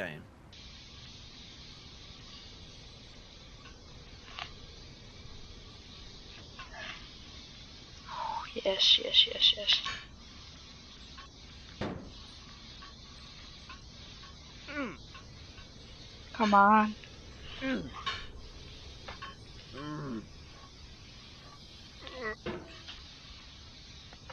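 A metal hammer clanks and scrapes against steel beams.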